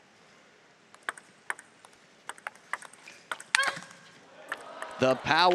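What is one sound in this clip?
A table tennis ball clicks back and forth between paddles and the table in a rally.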